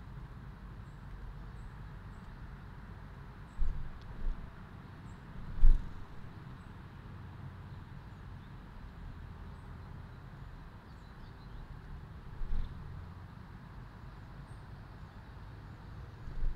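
Small birds chirp softly now and then outdoors.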